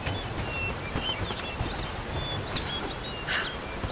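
A river rushes over rocks.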